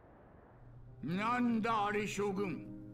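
A middle-aged man speaks in a pompous, animated voice.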